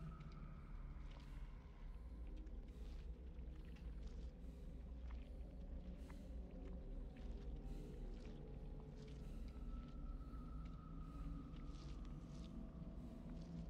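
A low, eerie drone hums steadily throughout.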